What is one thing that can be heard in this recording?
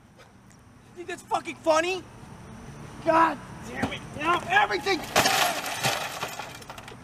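A young man shouts and exclaims excitedly nearby.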